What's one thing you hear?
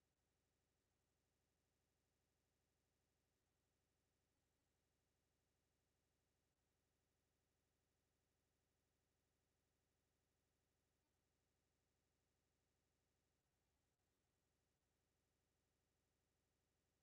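A clock ticks steadily and softly.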